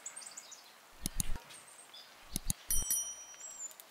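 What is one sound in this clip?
A metal spoon taps against a metal baking tray.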